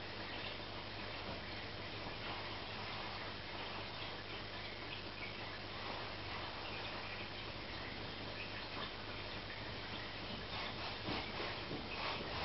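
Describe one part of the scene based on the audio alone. Water bubbles and trickles steadily in an aquarium.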